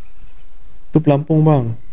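A man speaks loudly and with animation, close to a microphone.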